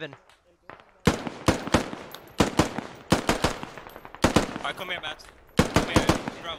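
A rifle fires sharp shots in quick bursts, with echoes.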